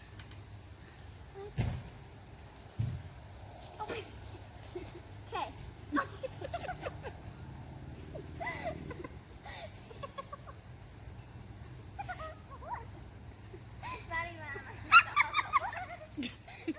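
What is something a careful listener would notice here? Young girls talk and giggle close by outdoors.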